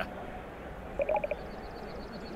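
Short electronic blips chirp as game dialogue text advances.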